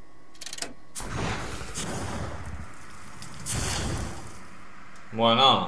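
Flames whoosh and roar in bursts.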